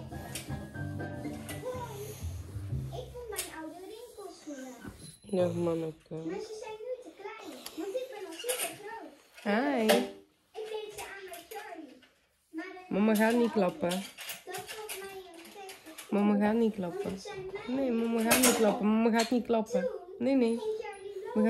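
A woman talks softly and playfully up close.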